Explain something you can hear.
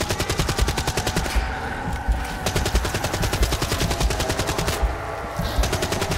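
A machine gun fires rapid bursts of shots.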